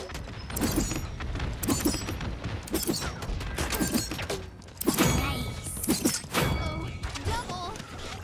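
Weapons fire in rapid bursts with sharp cracks.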